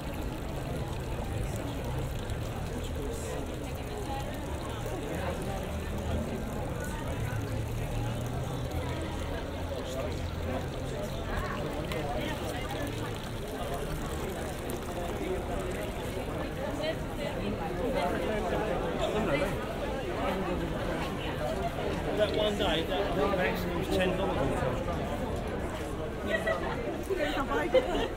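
A crowd of people chatter all around outdoors.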